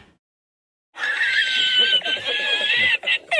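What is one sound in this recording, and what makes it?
An elderly man laughs loudly and heartily.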